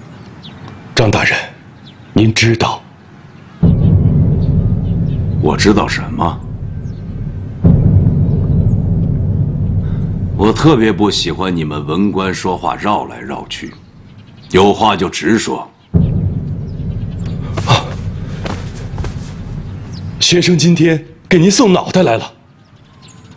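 A young man speaks in a tense, measured voice nearby.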